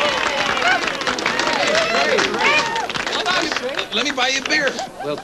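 A crowd cheers and whoops loudly nearby.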